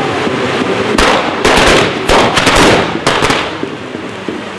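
Firecrackers bang in a rapid burst.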